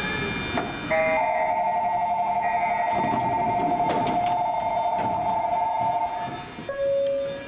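A door chime rings repeatedly.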